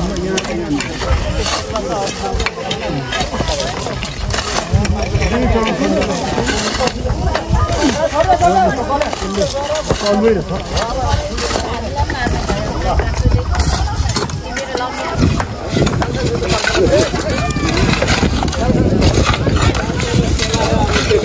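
Hoes and spades scrape and chop into stony soil.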